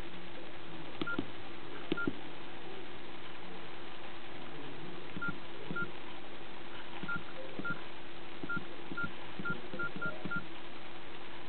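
Phone buttons click softly.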